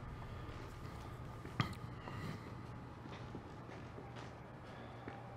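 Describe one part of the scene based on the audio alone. A young man speaks quietly and close into a microphone.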